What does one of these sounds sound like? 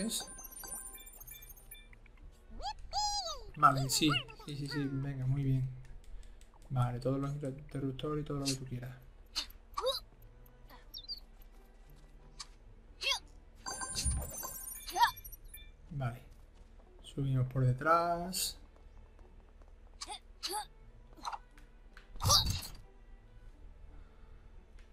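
Short cartoonish game sound effects pop and chime now and then.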